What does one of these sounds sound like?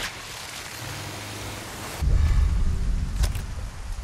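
A large fish splashes out of the water.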